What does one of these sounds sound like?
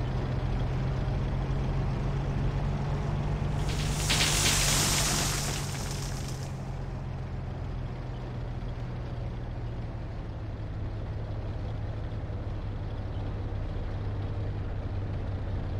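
A heavy engine rumbles low and steadily.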